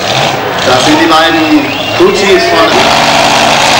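A nitro-fuelled dragster roars as it races down the strip.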